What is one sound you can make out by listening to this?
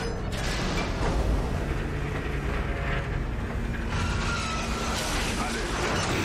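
A deep mechanical rumble drones steadily.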